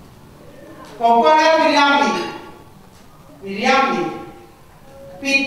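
A woman speaks with long, drawn-out phrases through a microphone in an echoing hall.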